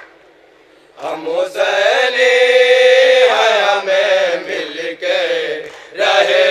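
A crowd of men chants along together.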